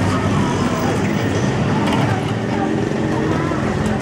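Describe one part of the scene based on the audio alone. Motorbikes buzz past close by.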